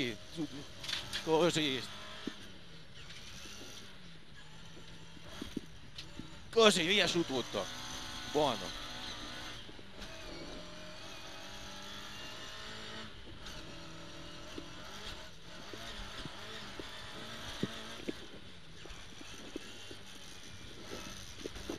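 A rally car engine roars and revs up and down from inside the car.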